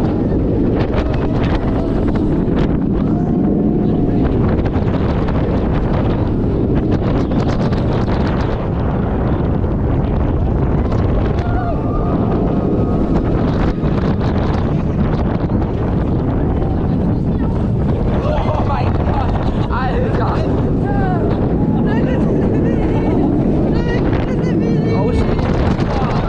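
Riders scream and shout with excitement.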